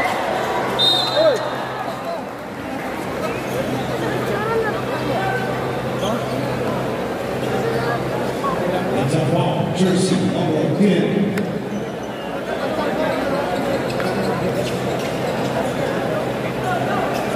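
A large crowd chatters and cheers in a big echoing gym.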